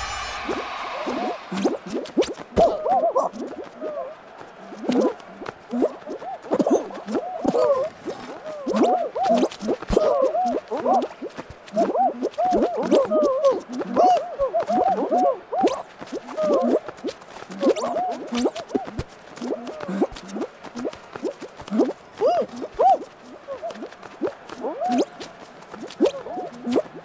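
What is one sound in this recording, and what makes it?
Cartoon jump sound effects boing and squeak as game characters leap and climb.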